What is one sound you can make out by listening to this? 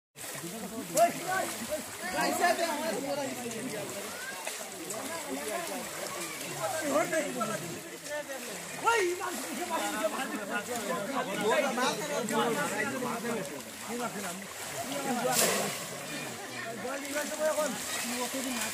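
A crowd of men talk and call out to each other outdoors.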